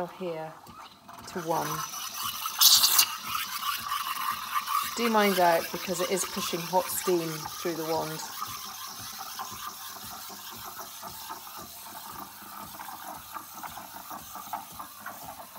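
Steam hisses steadily into a jug of milk.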